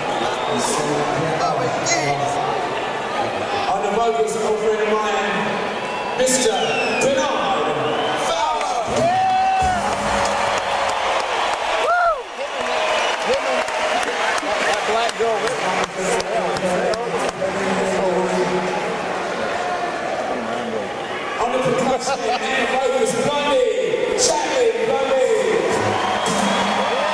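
A rock band plays loudly in a large echoing arena.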